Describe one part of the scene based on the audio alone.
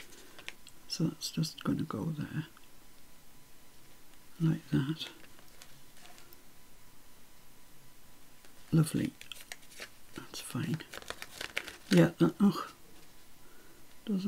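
Paper rustles and taps softly as hands press it down.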